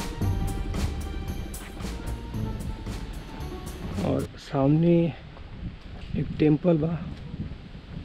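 A young man talks calmly up close.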